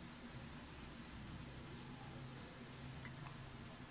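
A marker pen squeaks faintly across paper.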